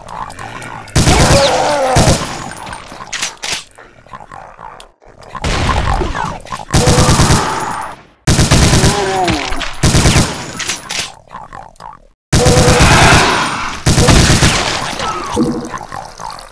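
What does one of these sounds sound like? A shotgun fires loud, booming blasts again and again.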